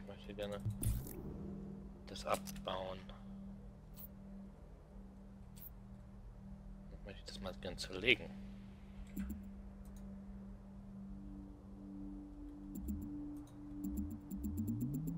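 Soft menu clicks and chimes sound as selections change.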